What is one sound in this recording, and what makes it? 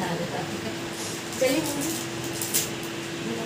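Plastic wrapping rustles and crinkles in hands.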